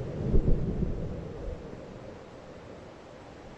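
A distant explosion booms and rumbles across open country.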